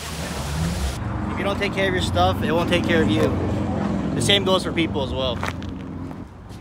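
A young man talks with animation, close to the microphone.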